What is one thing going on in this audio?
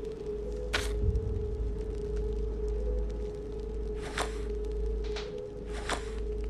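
Puzzle pieces slide into place with soft swishing clicks.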